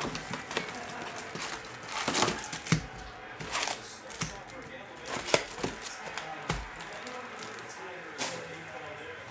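Cardboard boxes rustle and tap as hands handle them.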